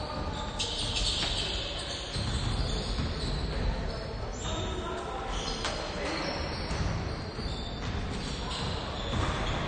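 Basketball shoes squeak on a wooden court in a large echoing hall.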